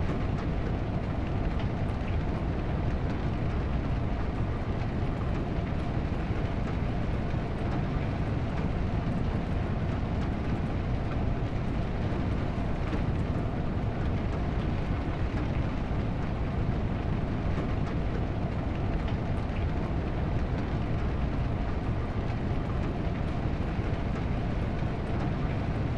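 A car engine roars steadily at speed.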